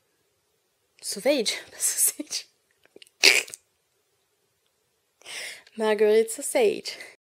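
A woman speaks close to a microphone in a lively, playful way.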